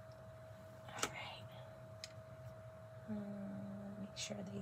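A glue gun clicks as it is picked up and set in place.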